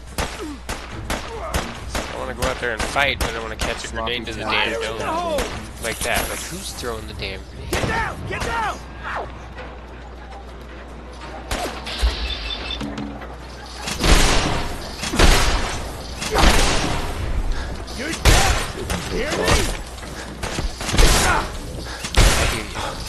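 Gunshots crack sharply and rapidly.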